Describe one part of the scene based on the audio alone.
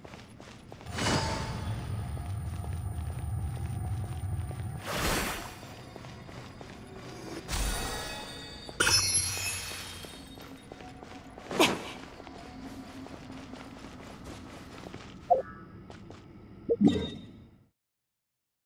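Magic attacks whoosh and crackle in bursts.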